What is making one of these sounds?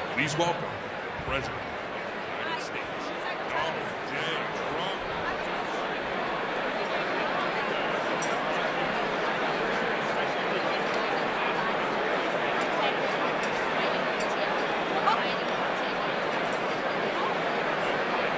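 A large crowd chatters loudly in a big echoing hall.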